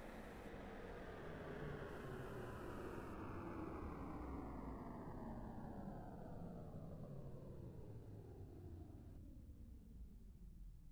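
Jet engines roar with a whine that slowly winds down in pitch.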